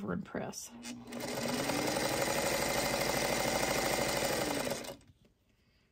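A sewing machine runs, stitching rapidly and steadily.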